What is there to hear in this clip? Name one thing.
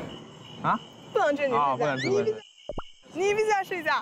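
A young woman talks playfully and close by.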